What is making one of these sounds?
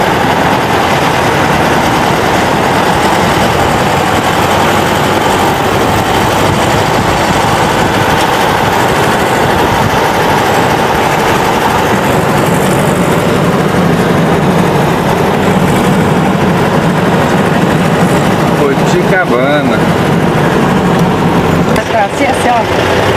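Wind and road noise rush loudly around a moving car.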